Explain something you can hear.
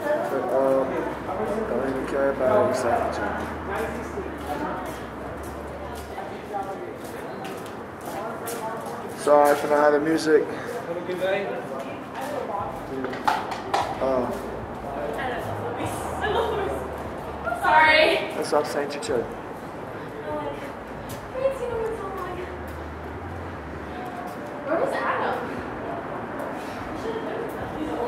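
A young man talks casually and close by, muffled through a face mask.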